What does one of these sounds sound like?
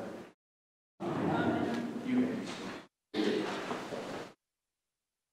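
An elderly man speaks calmly through a microphone in an echoing hall.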